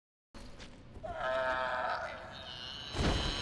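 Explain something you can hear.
A creature lets out a shrill, warbling cry.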